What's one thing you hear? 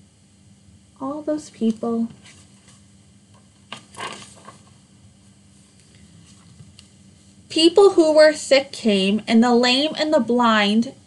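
A woman reads aloud calmly, close by.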